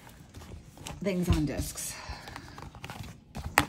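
A plastic sheet rustles as it is flipped over.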